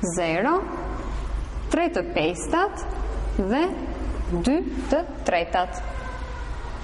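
A young woman speaks calmly and clearly close by.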